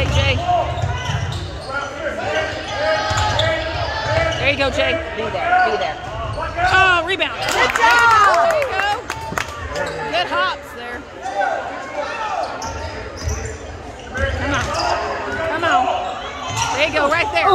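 A basketball bounces with dull thumps on the court.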